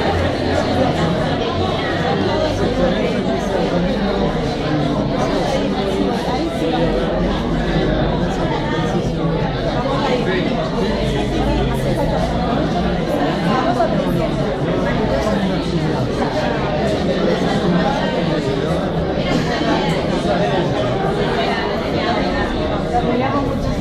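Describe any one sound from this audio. A crowd chatters all around in an echoing room.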